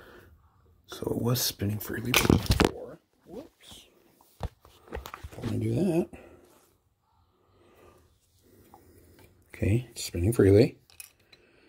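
Skin brushes and bumps against a phone held close.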